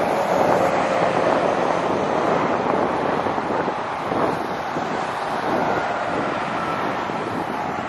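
A truck rumbles by loudly.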